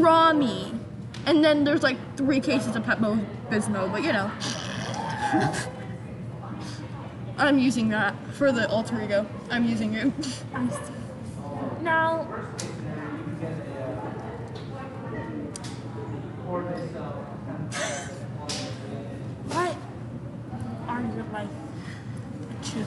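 A teenage girl talks and laughs close by.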